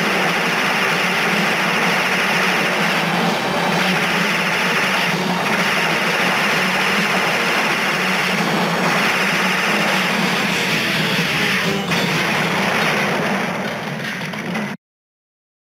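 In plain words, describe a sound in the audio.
Upbeat game music plays loudly.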